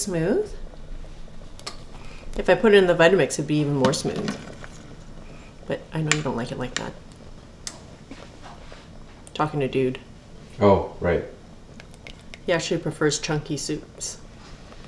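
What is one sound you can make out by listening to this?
A metal ladle scrapes and clinks against a pot.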